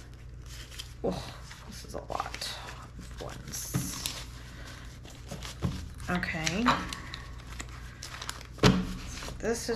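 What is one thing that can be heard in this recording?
Paper banknotes rustle and flick as hands count them.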